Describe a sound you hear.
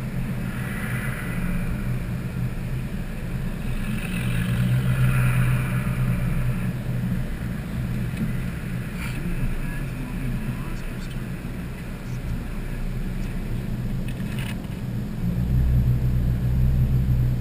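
A car engine hums steadily from inside the cabin as it drives along a road.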